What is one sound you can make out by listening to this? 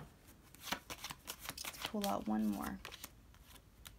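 Playing cards shuffle and flick against each other.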